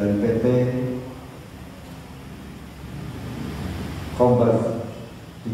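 A man speaks calmly through a microphone in an echoing room.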